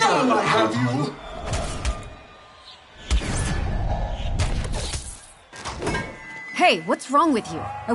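A young man speaks with animation, close by.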